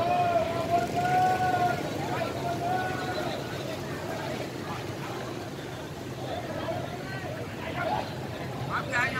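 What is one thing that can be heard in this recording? A crowd of people chatters outdoors in the distance.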